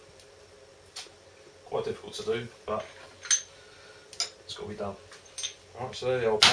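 Metal parts click and clink as they are handled.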